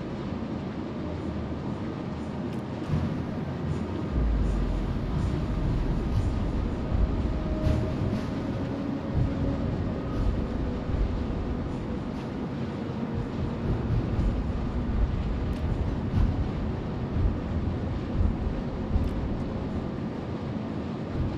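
Waves splash and rush against a ship's hull.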